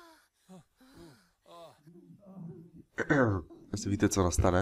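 A man moans loudly.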